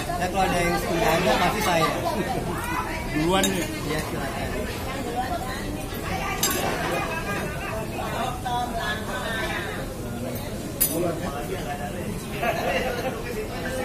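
Men and women chat at once close by, in a lively group.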